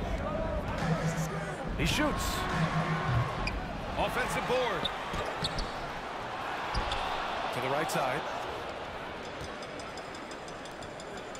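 A large crowd cheers and murmurs in a big arena.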